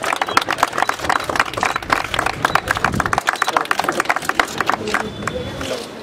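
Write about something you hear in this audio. A crowd claps hands in a quick patter of applause.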